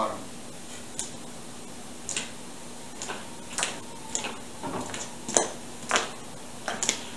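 Wooden boards knock and clatter as they are handled.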